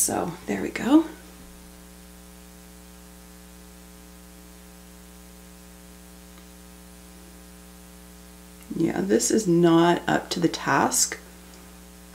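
A woman talks calmly and close up to a microphone.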